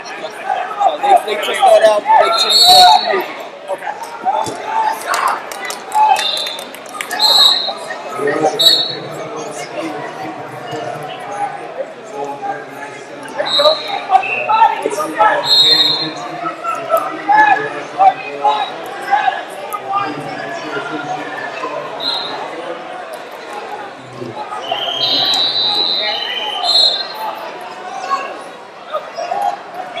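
A large crowd chatters throughout in a big echoing hall.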